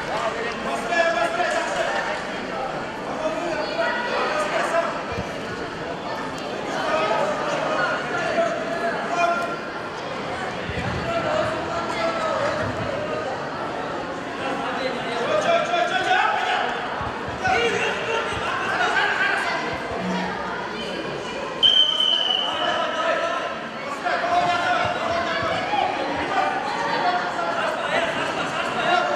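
Men and women in an audience talk and shout, echoing in a large hall.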